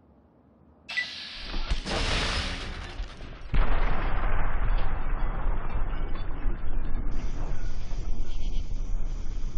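A loud explosion booms and rumbles away.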